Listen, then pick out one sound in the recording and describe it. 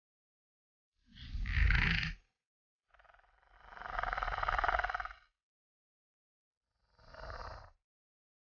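A large reptile hisses loudly in short bursts.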